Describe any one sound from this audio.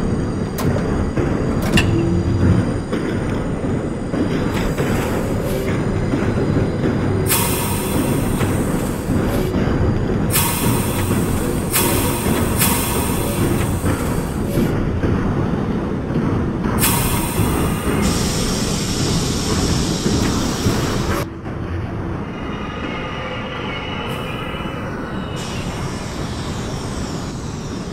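A subway train rumbles steadily along the rails.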